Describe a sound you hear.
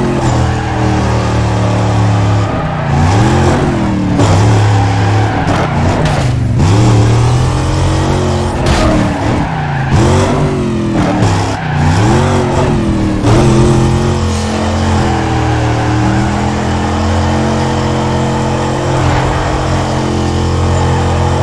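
Tyres squeal as a car slides sideways.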